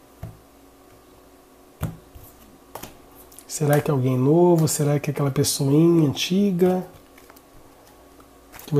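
Cards tap and slide on a table as they are dealt.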